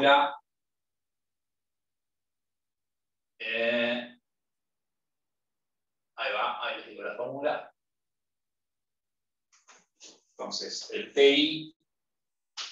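A man speaks calmly, close by, in short phrases with pauses.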